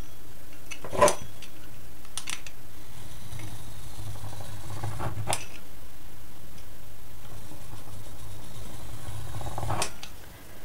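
A knife taps onto a countertop.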